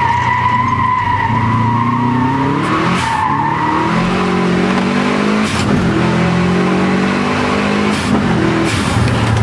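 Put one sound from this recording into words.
Tyres rush over a wet road.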